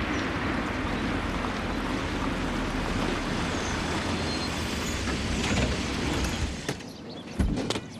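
A car engine hums as a car rolls up and stops.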